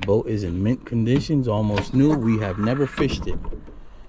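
A hatch lid swings open.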